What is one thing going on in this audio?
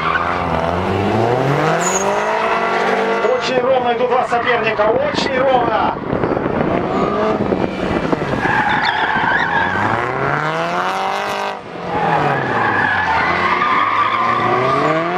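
A car engine revs hard, rising and falling as the car races around.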